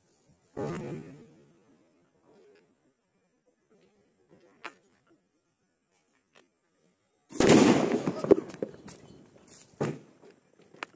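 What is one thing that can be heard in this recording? Firecrackers burst loudly outdoors.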